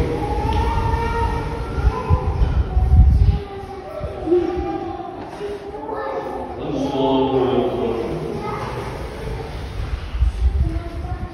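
A man chants a prayer through a loudspeaker, echoing in a large hall.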